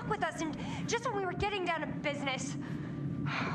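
A young woman speaks angrily, close by.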